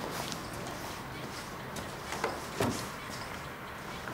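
A person walks closer with soft footsteps.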